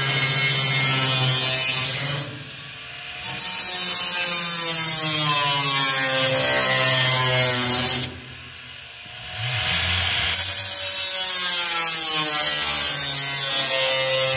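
An angle grinder screeches loudly against sheet metal, stopping and starting again.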